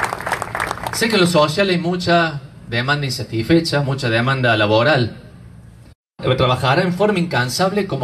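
A man speaks calmly through a loudspeaker.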